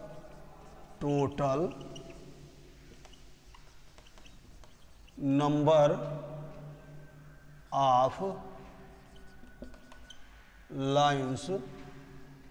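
A man speaks in short, clear phrases nearby, with pauses between them.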